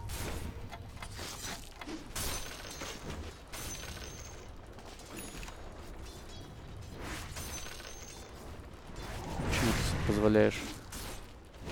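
Fantasy game combat sounds clash and crackle with spell effects.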